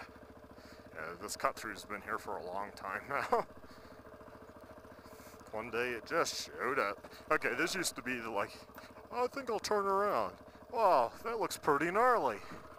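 A dirt bike engine revs up and down repeatedly.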